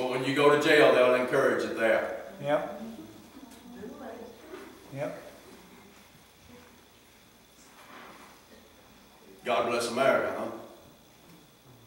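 A middle-aged man speaks calmly in a slightly echoing room.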